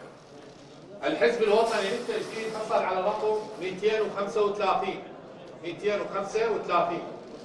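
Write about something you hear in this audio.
A man announces calmly into a microphone.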